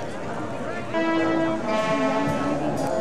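A brass band starts playing.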